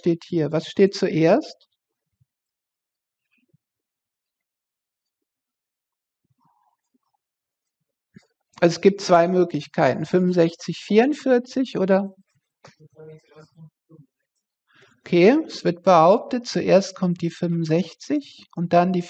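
A middle-aged woman explains calmly into a close microphone, with pauses.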